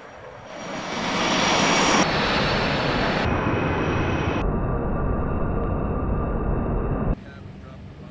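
A jet engine roars loudly and builds up to full power.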